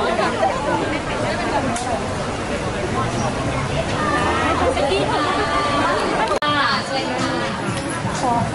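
A crowd of young women chatter and squeal excitedly nearby.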